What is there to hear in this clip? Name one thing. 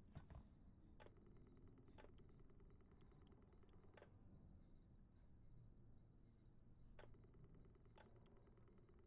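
Buttons click on a control panel.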